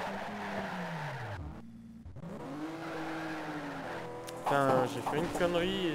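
Tyres screech while a car slides through a corner.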